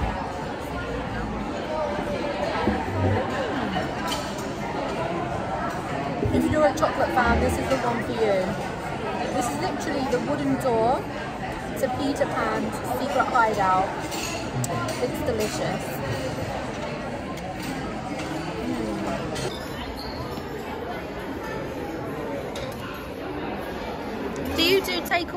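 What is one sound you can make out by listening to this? A murmur of people chatting fills the background.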